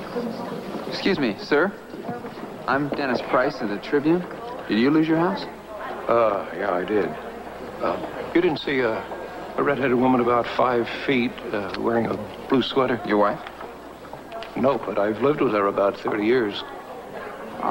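An elderly man speaks with animation, close by.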